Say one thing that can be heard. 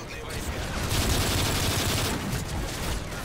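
A rifle fires a rapid, loud burst.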